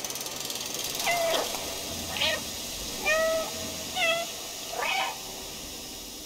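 A cat meows in short, high chirps.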